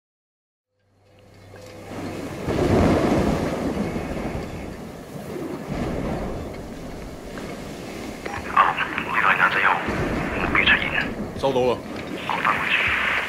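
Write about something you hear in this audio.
Heavy rain pours down steadily outdoors.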